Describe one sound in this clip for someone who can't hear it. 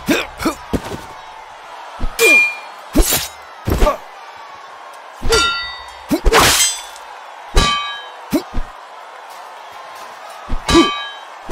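Metal swords clash and ring sharply, again and again.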